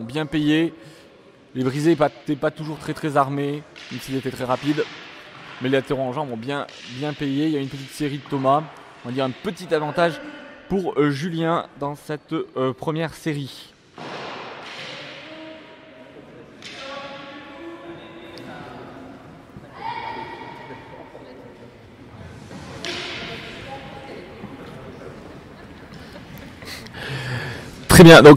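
Men talk faintly far off in a large echoing hall.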